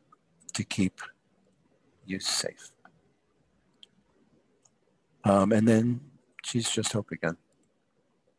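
A man speaks in short bursts over an online call.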